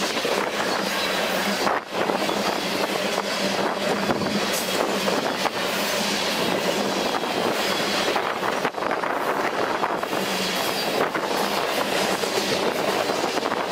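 A long freight train rumbles past close by, its wheels clattering and squealing on the rails.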